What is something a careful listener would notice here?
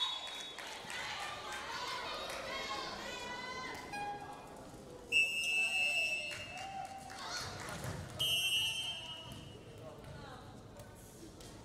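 Young women players shout and cheer.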